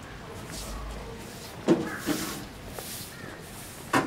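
A broom sweeps over stone paving, scraping in short strokes.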